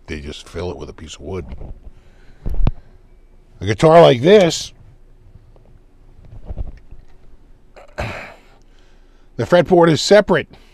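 A middle-aged man talks calmly and closely into a microphone.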